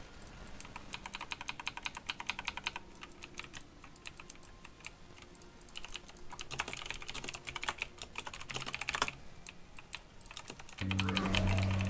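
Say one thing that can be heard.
Rapid clicks and magic effects chime and crackle.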